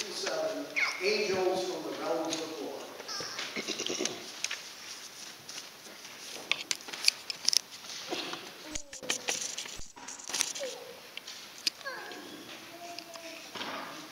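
An elderly man reads aloud in a large echoing room.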